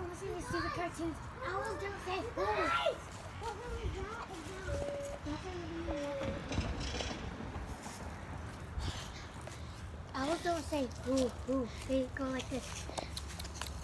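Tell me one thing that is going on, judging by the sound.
A young boy talks playfully, close to the microphone.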